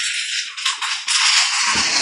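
Plastic tiles clack and rattle as hands push them across a table.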